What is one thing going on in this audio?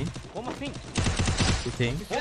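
Gunshots fire rapidly in a video game.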